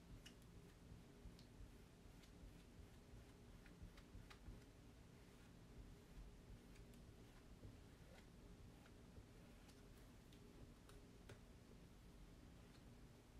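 A sponge dabs softly and repeatedly on a board.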